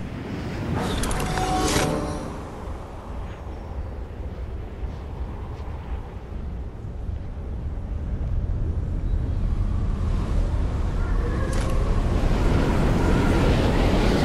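Wind rushes steadily while gliding through the air, growing louder.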